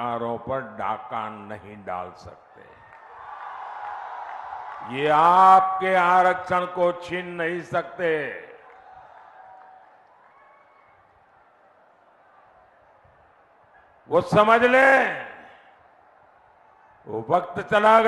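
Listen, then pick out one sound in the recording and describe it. An elderly man speaks forcefully through a loudspeaker, echoing outdoors.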